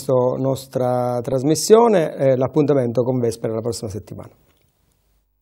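A middle-aged man speaks calmly into a microphone.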